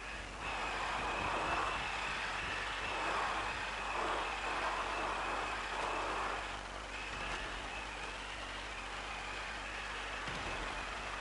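A small remote-control car's motor whines steadily.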